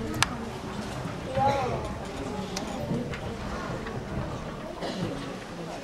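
Children chatter and call out in a hall.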